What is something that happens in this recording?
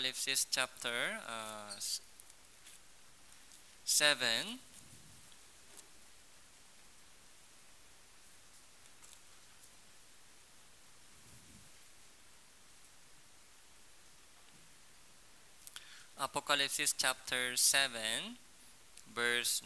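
A young man speaks calmly into a close microphone, with long pauses.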